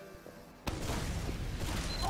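A heavy machine gun fires in a rapid, rattling stream.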